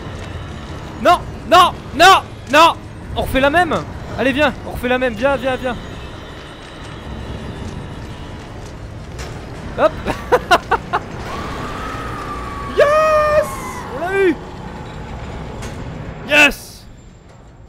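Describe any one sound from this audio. A young man exclaims loudly into a microphone in short bursts.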